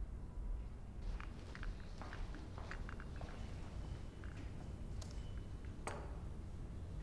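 Footsteps cross a hard floor in an echoing room.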